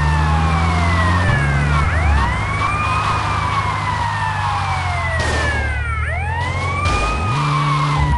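A police siren wails up and down in a video game.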